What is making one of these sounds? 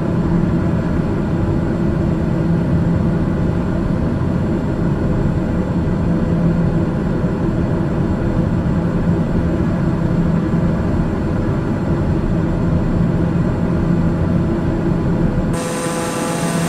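A propeller plane's engine drones steadily, muffled as if heard from inside the cabin.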